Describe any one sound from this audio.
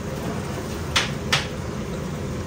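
A ladle clanks against a metal pot.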